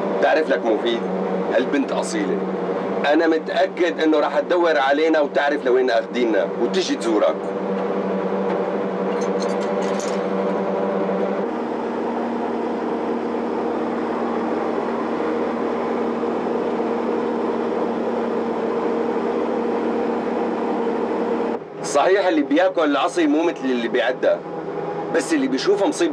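A vehicle's engine drones steadily.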